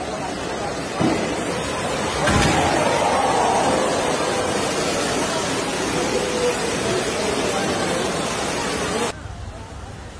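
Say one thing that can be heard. Floodwater gushes and splashes loudly indoors.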